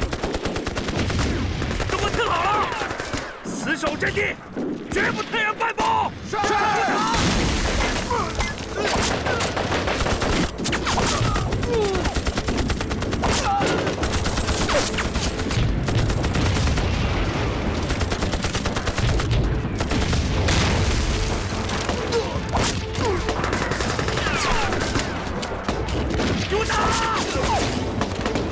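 Gunfire crackles rapidly.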